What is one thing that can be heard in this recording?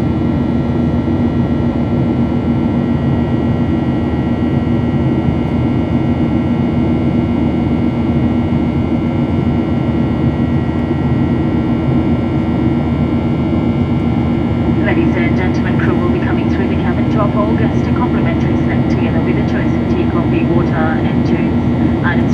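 A jet engine roars steadily with a deep, constant hum.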